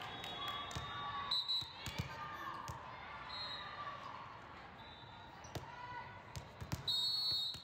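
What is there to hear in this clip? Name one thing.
A volleyball is bounced and thumps on a hand.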